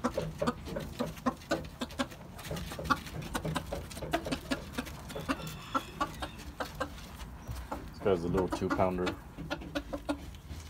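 A rooster clucks in short, quick bursts close by.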